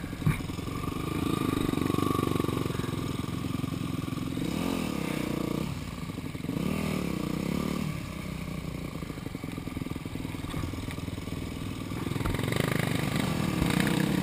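A dirt bike engine rumbles close by, revving up and down.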